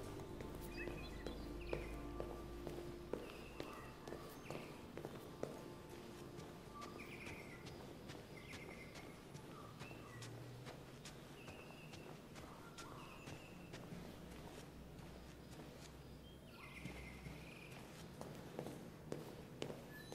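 Footsteps tap on a hard floor and up stairs indoors.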